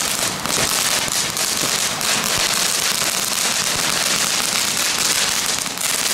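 Firework fountains hiss and crackle loudly outdoors.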